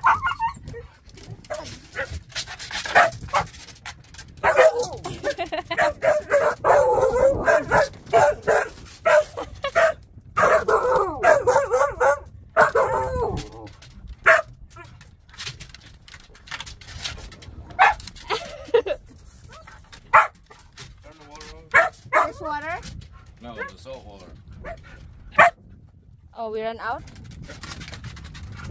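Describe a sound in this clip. A dog whines and howls excitedly nearby.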